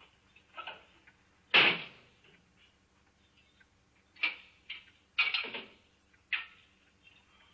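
A metal cell door clanks and rattles.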